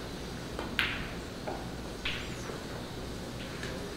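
Snooker balls knock together with a click.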